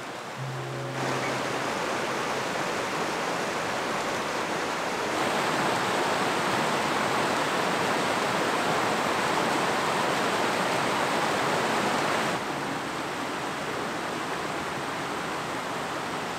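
A mountain stream rushes and splashes over rocks close by.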